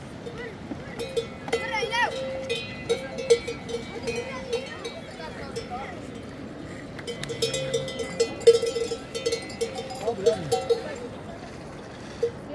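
Goats bleat loudly, again and again.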